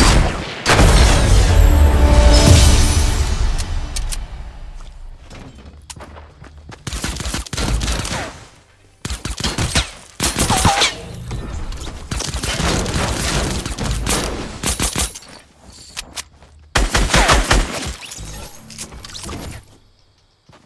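Gunshots fire in a video game.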